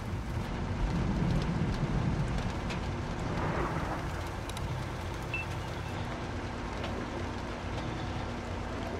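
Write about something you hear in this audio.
A heavy tank engine rumbles low and steadily.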